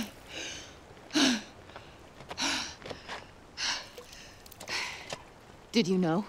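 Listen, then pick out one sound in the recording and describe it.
A man gasps and pants heavily.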